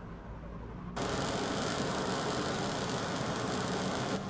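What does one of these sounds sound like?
Sparks hiss and crackle steadily against a metal door.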